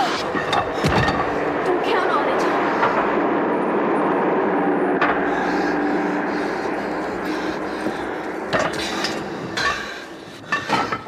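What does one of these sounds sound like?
A bus engine rumbles loudly nearby.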